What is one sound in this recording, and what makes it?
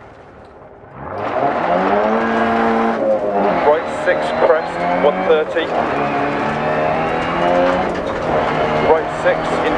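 A rally car engine revs hard, rising and falling in pitch as it shifts gears.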